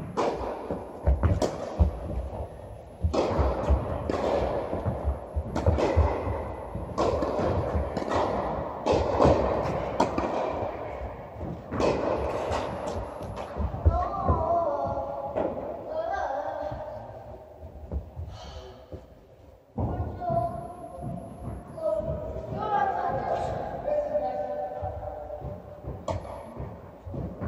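Tennis balls are struck with rackets in a large echoing hall.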